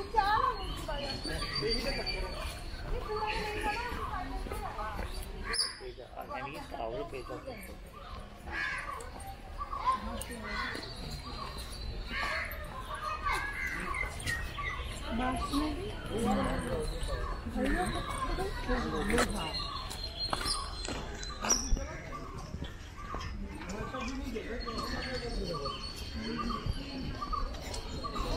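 A woman talks casually close by.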